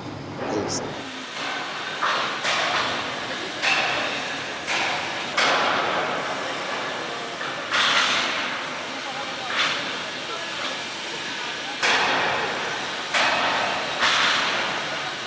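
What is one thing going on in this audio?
Steel bars scrape and clank against each other.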